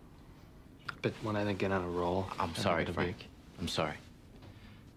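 A second man answers calmly, close by.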